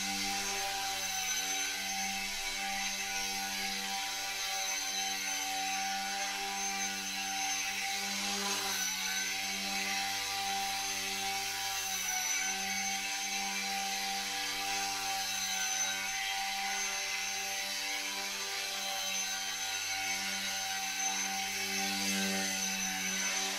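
A small toy drone hovers and buzzes steadily, its whine wavering slightly as it flies around.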